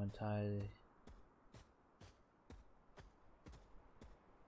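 Footsteps patter quickly and evenly on grass.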